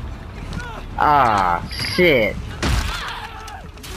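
A man shouts and grunts while struggling.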